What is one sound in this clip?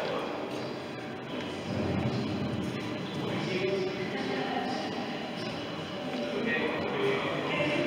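People's voices murmur far off in a large echoing hall.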